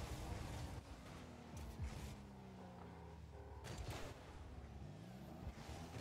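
A ball thuds when a car hits it.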